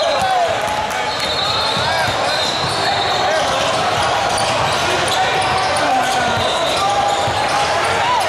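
A crowd of spectators chatters and shouts in a large echoing gym.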